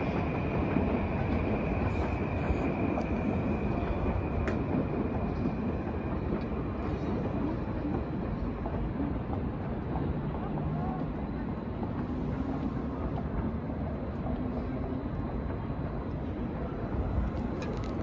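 A city hums steadily in the distance.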